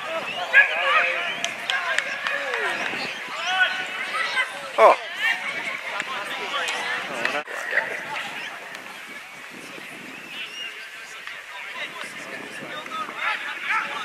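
Young men shout and call out to each other outdoors across an open field.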